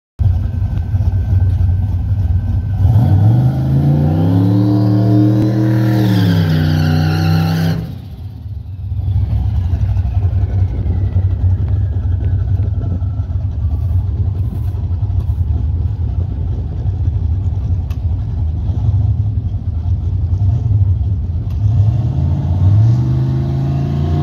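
A car engine idles with a deep, rough rumble nearby.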